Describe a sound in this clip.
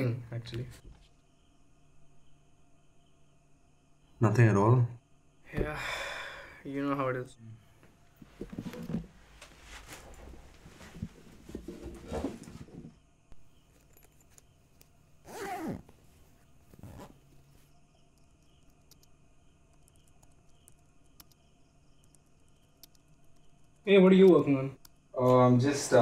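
A young man speaks quietly and hesitantly, close by.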